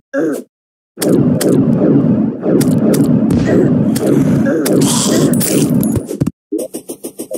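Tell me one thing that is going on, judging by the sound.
A loud, dense rush of fighting noises and hits goes on for a few seconds.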